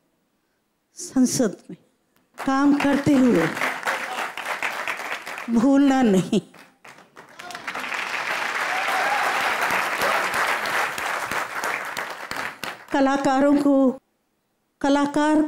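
An elderly woman sings into a microphone in a large hall.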